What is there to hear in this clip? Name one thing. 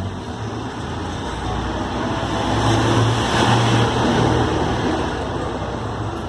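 A laptop fan whirs steadily.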